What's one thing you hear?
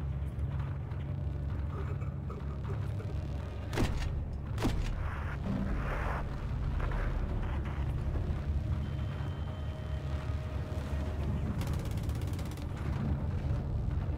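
Explosions boom and rumble in the distance, one after another.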